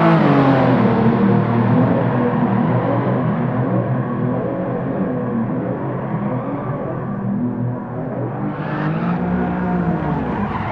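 Tyres squeal as a sedan slides sideways.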